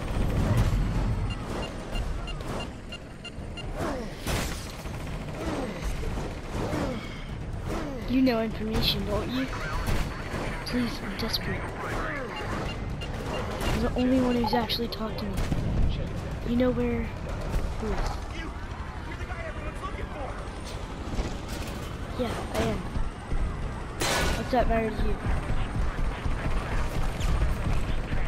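Heavy thuds and crashes sound in quick succession.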